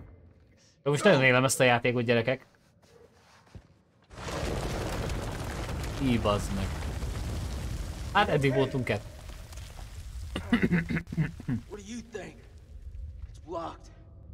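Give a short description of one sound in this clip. A young man talks close to a headset microphone.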